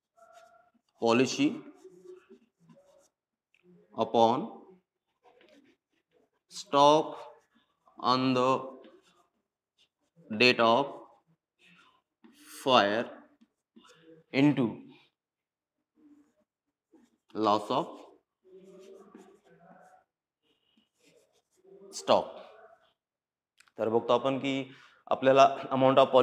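A man speaks in short, loud phrases with pauses, like a teacher explaining.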